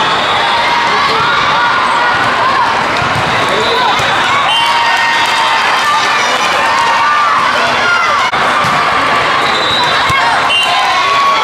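A volleyball is struck with dull smacks.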